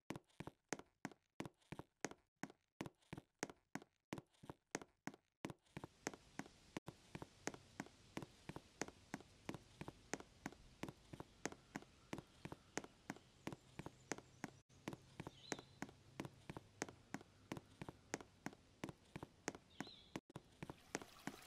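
Quick footsteps tap steadily on hard ground.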